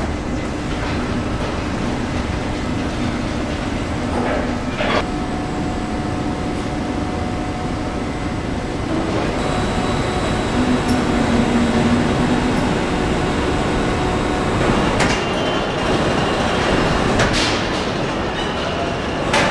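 Machinery hums steadily in a large echoing hall.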